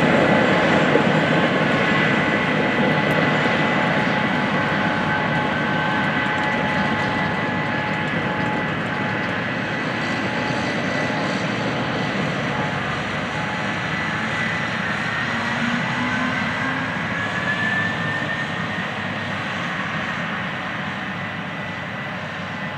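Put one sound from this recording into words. Farm machinery drones steadily in the distance, outdoors.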